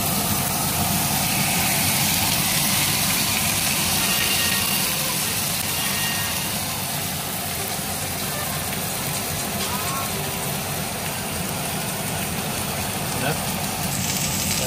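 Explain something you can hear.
Steaks sizzle loudly in a hot pan.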